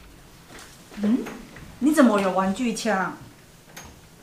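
A woman speaks with surprise, close by.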